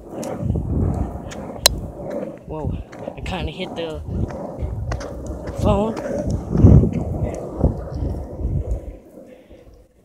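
Skateboard wheels rumble over rough asphalt.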